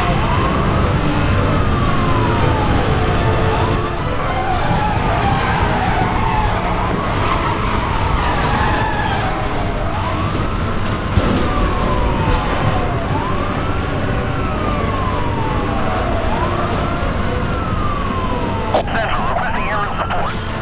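A racing car engine roars at high speed.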